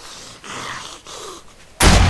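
A zombie snarls close by.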